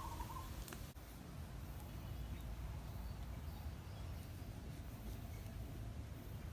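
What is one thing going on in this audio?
A knife scrapes and shaves at something small in short strokes.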